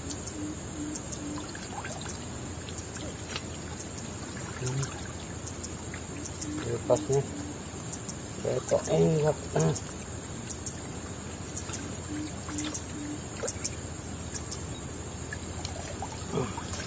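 Water splashes as a person wades in shallow water.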